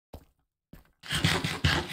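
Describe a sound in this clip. A character eats food with loud crunching munches.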